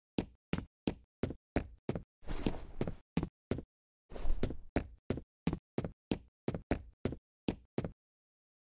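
Footsteps thud quickly and steadily on a hard floor.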